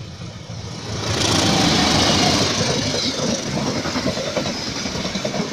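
Train wheels clatter loudly on the rails as carriages rush past close by.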